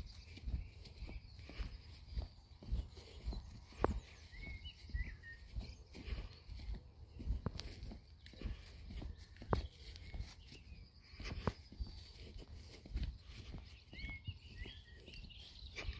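Footsteps thud softly on grass at a steady walking pace.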